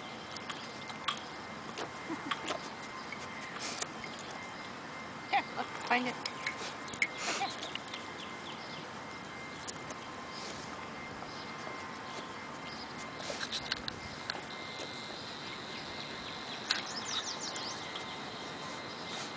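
A dog chews and gnaws on something close by.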